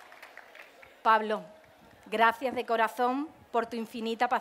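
A woman speaks into a microphone, heard through loudspeakers outdoors.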